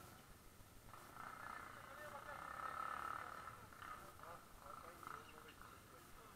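A four-stroke single-cylinder dirt bike revs as it climbs a dirt trail.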